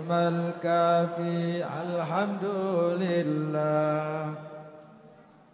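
A man chants in long, drawn-out tones through loudspeakers.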